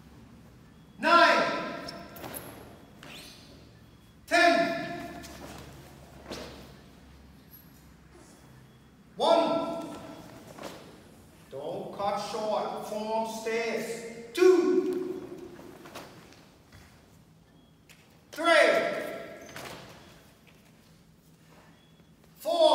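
Young people shout sharply together, echoing around a large hall.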